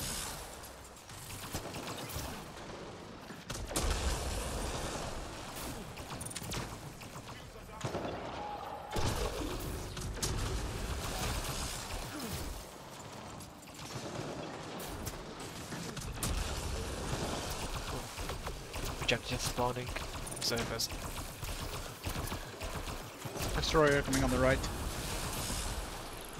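Guns fire in rapid bursts with loud, sharp shots.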